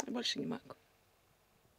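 A middle-aged woman speaks softly nearby.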